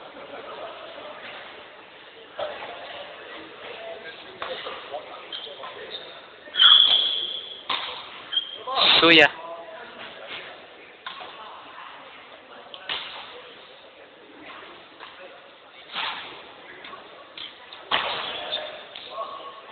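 Many people chatter in the background of an echoing hall.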